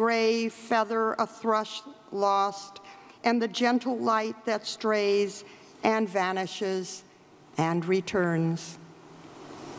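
An elderly woman speaks calmly into a microphone in a large hall.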